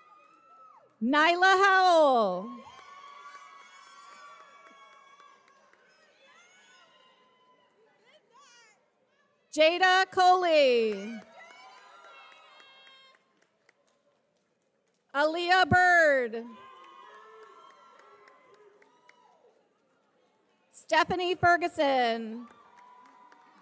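A loud crowd cheers in bursts in a large echoing hall.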